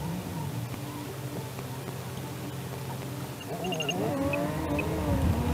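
A car engine idles steadily, then revs up as the car pulls away.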